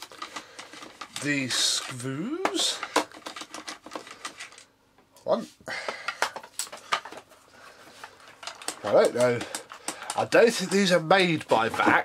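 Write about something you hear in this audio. A screwdriver clicks and scrapes against plastic screws.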